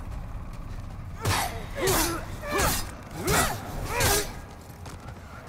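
Blades clash and strike in quick blows.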